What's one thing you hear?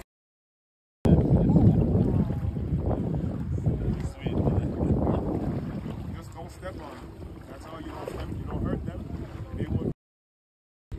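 Shallow water laps and swirls gently around legs.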